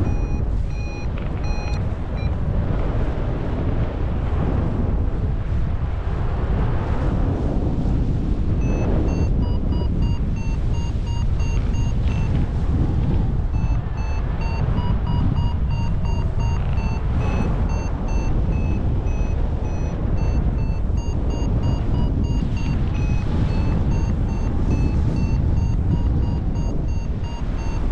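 A flight instrument beeps rapidly in short, changing tones.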